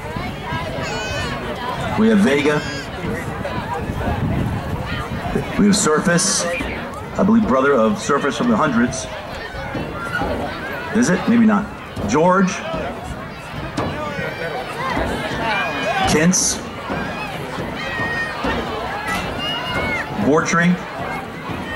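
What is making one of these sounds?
A crowd of adults and children chatter outdoors.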